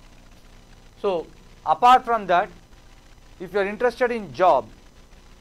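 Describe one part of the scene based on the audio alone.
A man speaks with animation into a clip-on microphone.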